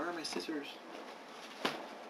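Packing paper rustles in a cardboard box.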